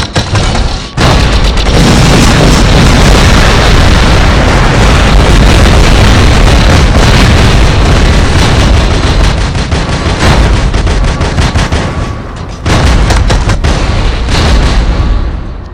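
Heavy guns fire in loud bursts.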